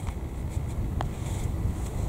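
A putter taps a golf ball softly.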